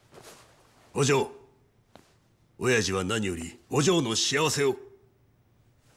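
A man speaks in a gruff, menacing voice.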